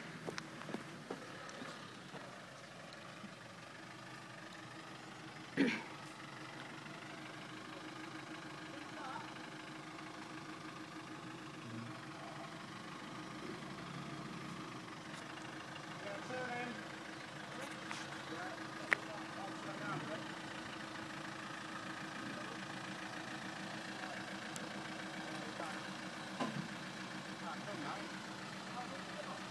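An off-road vehicle's engine idles and rumbles steadily.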